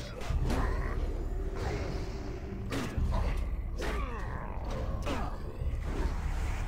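Magic spells whoosh and burst.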